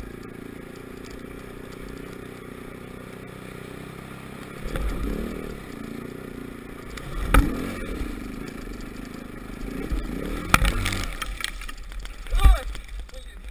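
A motorbike engine hums and revs steadily.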